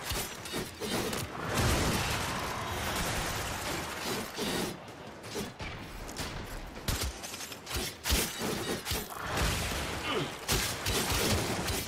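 Weapons clash and slash in rapid, punchy bursts.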